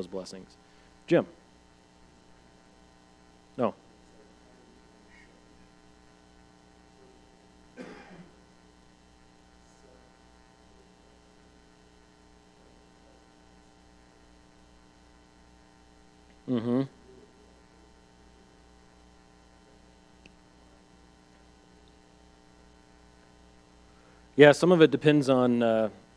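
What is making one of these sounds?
A man speaks calmly to an audience.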